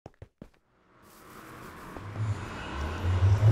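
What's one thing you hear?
A magical portal hums and whooshes, growing louder.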